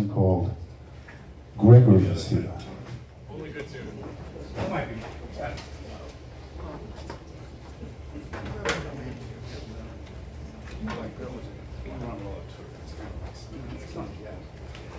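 A double bass plays a low, plucked line.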